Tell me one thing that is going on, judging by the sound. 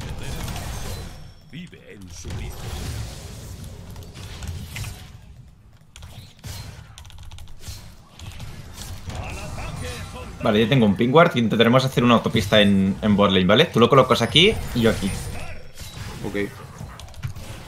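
Game sound effects of spells and hits play.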